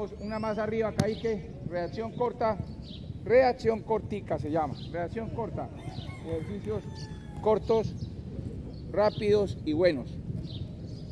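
A man speaks loudly nearby, outdoors.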